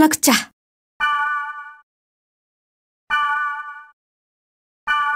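A short electronic chime sounds as a message box opens.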